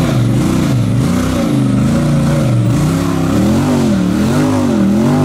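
An off-road vehicle's engine revs up and down as it climbs over rocks.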